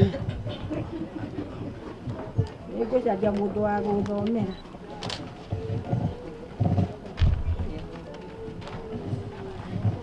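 An elderly woman reads aloud nearby, outdoors.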